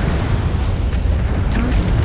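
A laser weapon fires with a buzzing zap.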